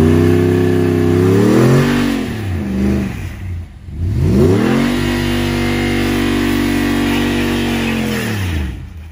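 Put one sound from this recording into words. A pickup truck's engine hums and revs up and down as it drives slowly.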